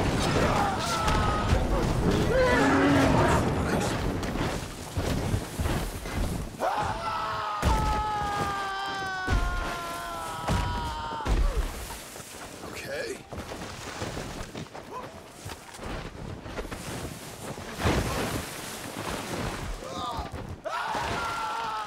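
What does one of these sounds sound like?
Bodies tumble and thud down a snowy slope.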